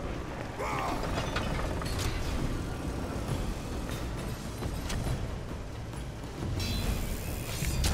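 A heavy wooden catapult creaks and groans as it is turned.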